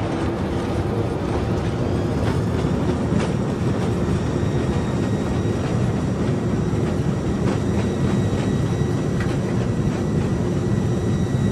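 A jet engine hums and whines steadily close by.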